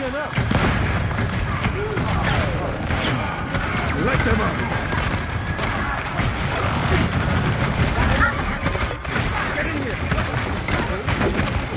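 Energy blasts zap and explode.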